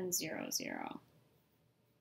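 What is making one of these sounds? A woman speaks calmly into a microphone, close by.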